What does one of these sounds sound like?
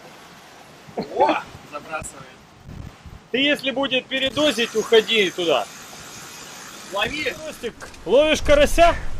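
A man talks nearby in a lively voice.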